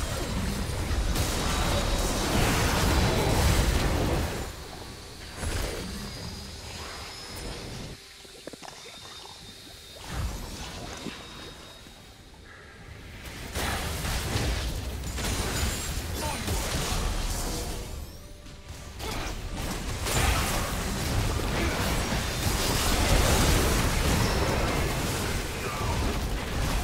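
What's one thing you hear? Magic blasts and clashing weapons crackle and boom in a busy battle.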